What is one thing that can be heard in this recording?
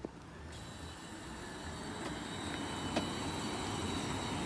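Tyres hum and swish on asphalt as a car passes close by.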